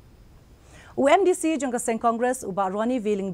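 A woman reads out news clearly through a microphone.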